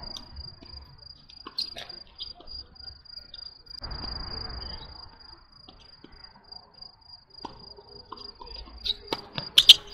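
A tennis ball is struck with a racket.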